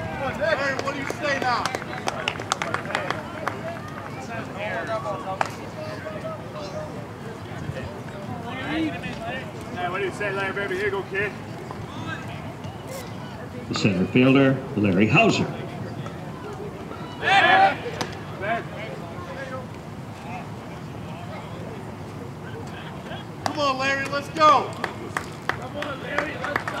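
Young men on the sidelines shout and call out encouragement outdoors.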